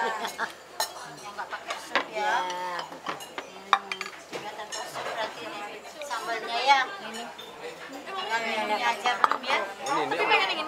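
Several people talk and laugh nearby.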